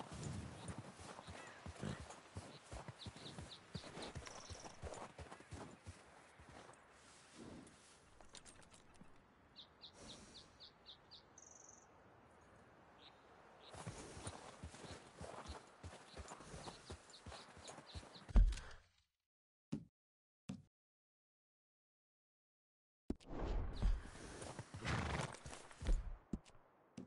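A horse's hooves crunch steadily through snow.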